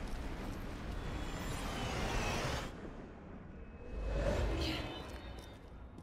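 A magical shimmering whoosh swells up.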